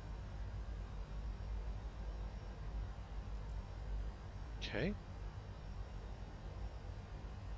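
Aircraft engines drone with a steady low rumble.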